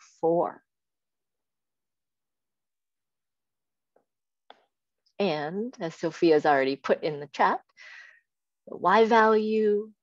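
A young woman speaks calmly, heard through an online call.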